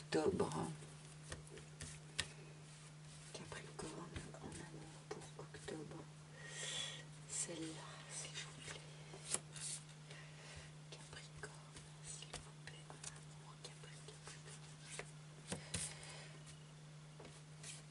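Cards shuffle and riffle softly in hands.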